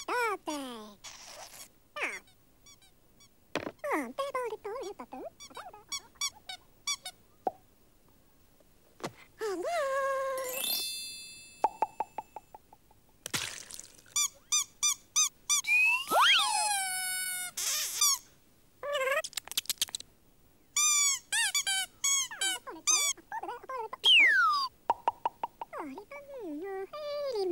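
Small clay figures babble in high, squeaky, warbling cartoon voices.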